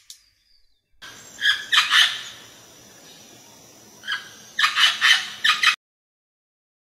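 A parrot squawks loudly and repeatedly.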